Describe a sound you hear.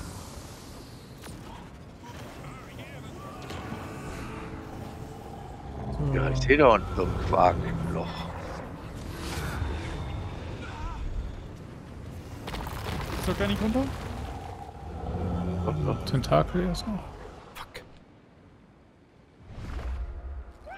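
Magic spells burst and boom in a game battle.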